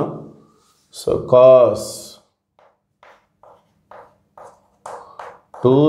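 Chalk taps and scratches on a board in short strokes.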